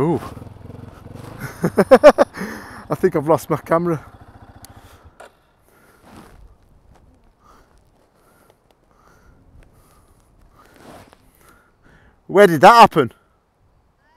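A motorbike engine revs hard in loud bursts.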